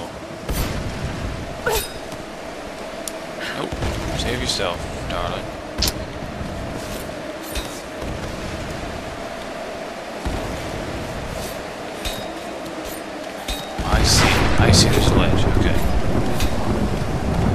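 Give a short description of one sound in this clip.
Ice axes strike and scrape against ice.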